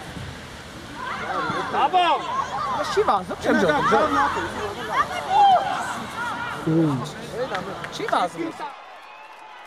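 Young players shout and call out to each other across an open outdoor field.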